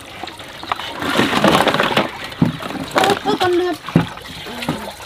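Mussels clatter and splash into a metal basin of water.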